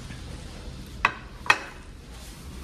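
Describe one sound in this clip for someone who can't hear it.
A ceramic plate clinks as it is set down on a table.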